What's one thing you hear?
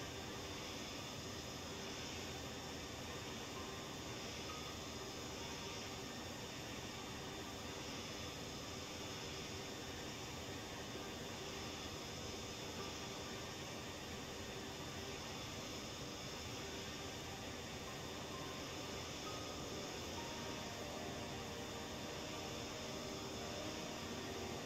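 Jet engines roar steadily as an airliner cruises.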